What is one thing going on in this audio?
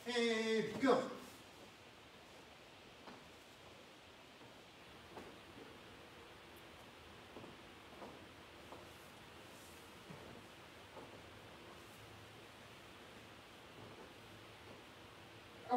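A man's hands and feet pad softly on a floor mat.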